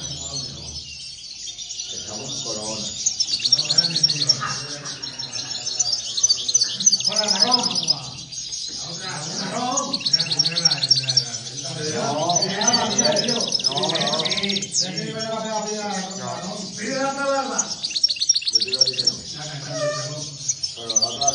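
Small caged birds chirp and trill rapidly.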